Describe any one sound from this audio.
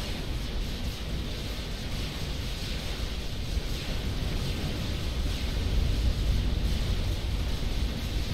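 Explosions and gunfire from a battle rumble continuously.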